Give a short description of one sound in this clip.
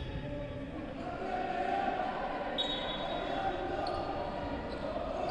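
Men shout and call out to each other in a large echoing hall.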